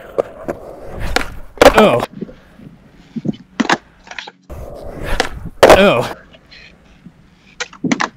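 A skateboard pops and clatters on pavement.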